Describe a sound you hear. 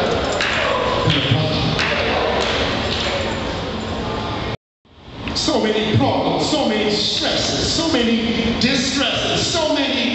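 A man preaches with animation through loudspeakers in a large echoing hall.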